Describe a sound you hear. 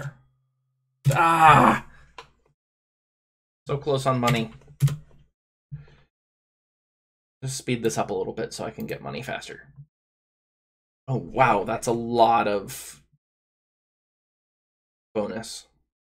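A man talks calmly and closely into a microphone, in short bursts.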